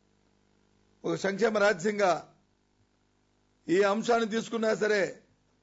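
A middle-aged man speaks with animation into a microphone, in short bursts.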